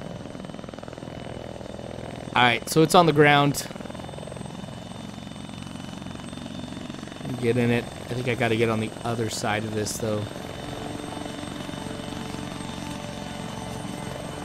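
A helicopter's rotor thrums steadily as the helicopter lands nearby.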